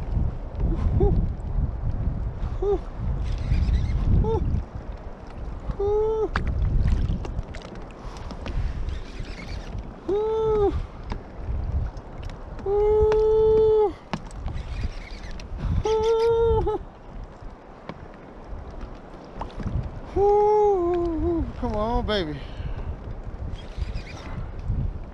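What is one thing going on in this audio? A fishing reel clicks and whirs as it is cranked.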